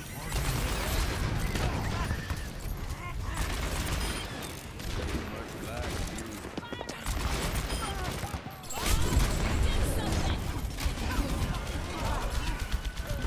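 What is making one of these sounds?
A revolver fires rapid fanned shots.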